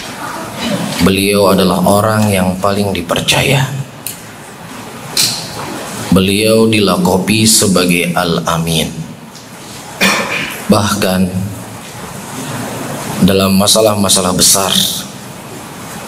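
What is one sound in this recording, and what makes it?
A man speaks calmly into a microphone in an echoing room, with pauses between phrases.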